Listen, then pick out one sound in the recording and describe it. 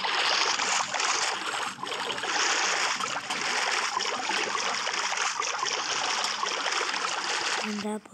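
A steady underwater rush of bubbling water fills the stretch.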